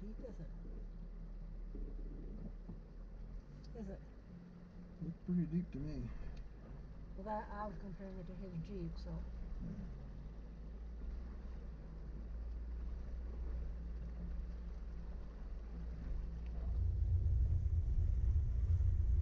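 A vehicle engine hums low and steady, growing louder near the end.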